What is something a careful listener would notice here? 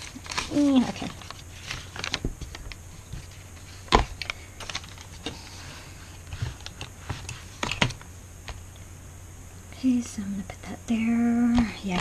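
Paper rustles and crinkles as pages are handled.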